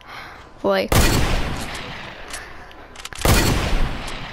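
A shotgun fires with loud blasts.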